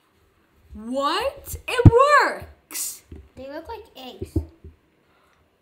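A young boy exclaims in surprise.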